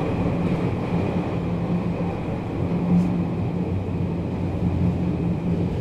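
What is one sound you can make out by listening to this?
An electric train rumbles along with a steady low motor hum.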